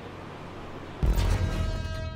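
A car lands hard with a heavy thump.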